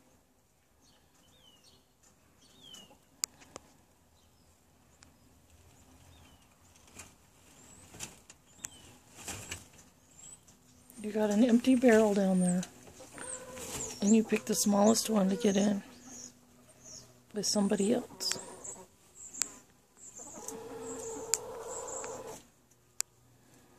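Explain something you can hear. Straw rustles as a hen shifts in a nest.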